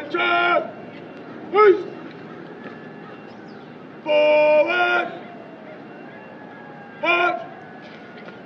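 A man shouts drill commands loudly outdoors.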